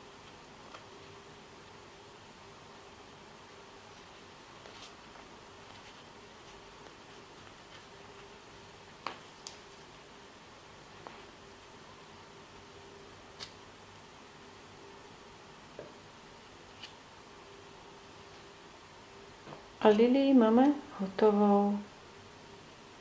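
Hands handle delicate objects with faint soft taps and rustles.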